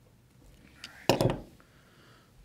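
Metal pliers clank down onto a wooden table.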